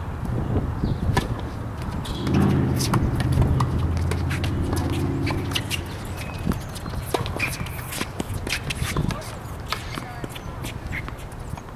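A tennis ball is struck with a racket, with sharp pops back and forth outdoors.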